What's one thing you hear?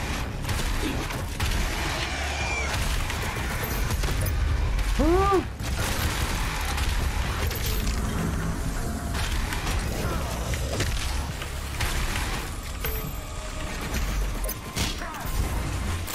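Rapid gunfire blasts loudly.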